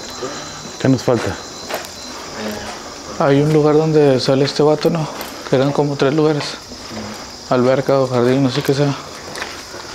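A man talks nearby in a low, animated voice.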